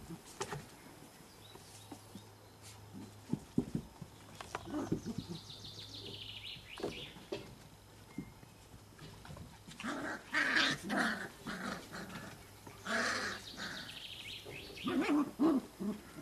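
Puppies' paws patter and scrabble on a wooden deck.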